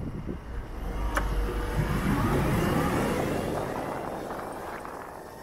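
A motorcycle engine revs up as the motorcycle pulls away.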